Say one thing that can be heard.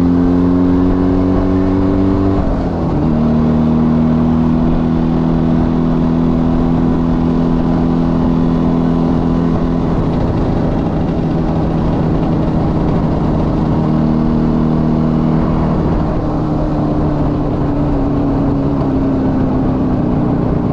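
A small motorcycle engine drones steadily, briefly dipping as it shifts gear.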